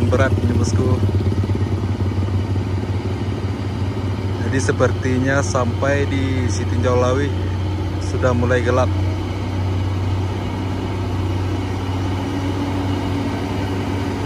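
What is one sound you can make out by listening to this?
A heavy truck engine rumbles steadily as the truck slowly approaches.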